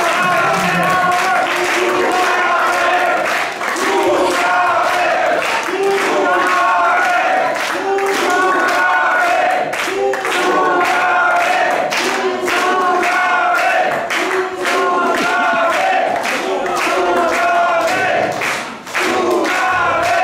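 A crowd claps along in a steady beat.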